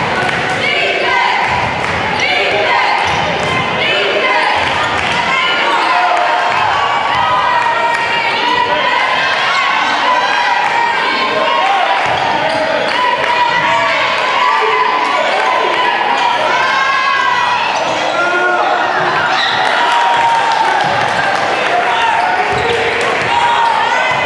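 A crowd chatters and cheers throughout in a large echoing gym.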